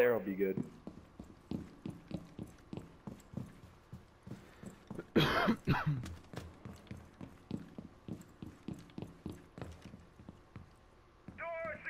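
Quick footsteps thud on wooden stairs and floors.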